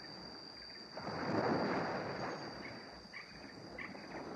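Shallow water laps softly at the shore.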